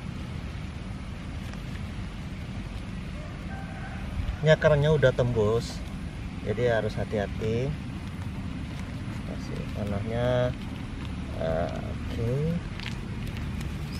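Plastic crinkles softly as a bag is peeled from a seedling's roots.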